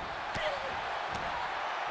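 A kick thuds sharply against a body.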